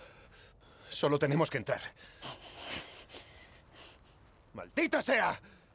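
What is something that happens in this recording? A young man answers in a low voice.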